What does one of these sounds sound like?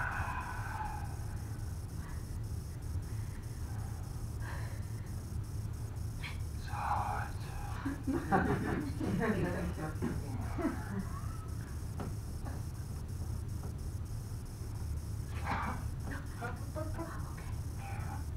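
A young woman talks with animation, heard from a short distance in a room.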